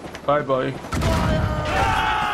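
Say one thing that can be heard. A cannon blast booms loudly with a deep rumble.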